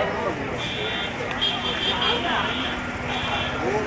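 A motorbike engine hums as it rides past.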